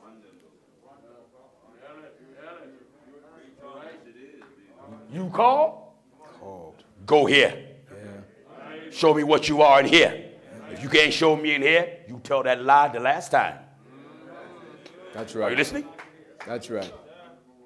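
A man preaches loudly and with passion in a large echoing hall.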